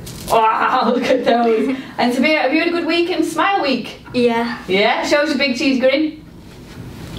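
A girl speaks animatedly into a close microphone.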